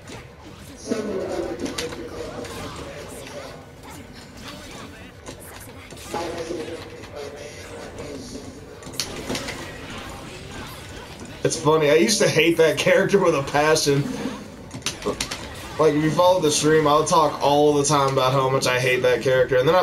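Game music plays.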